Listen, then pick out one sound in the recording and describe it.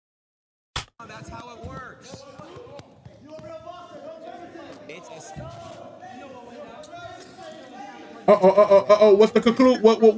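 A crowd of young men chatters and shouts in the background.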